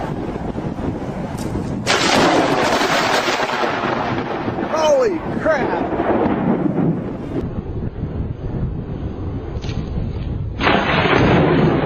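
Thunder rumbles loudly.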